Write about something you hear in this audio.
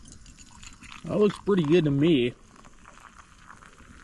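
Hot coffee pours into a metal mug.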